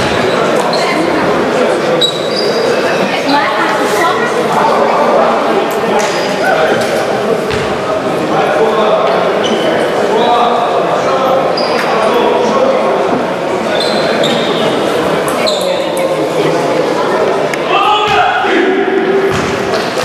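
Young players chatter and shout in a large echoing hall.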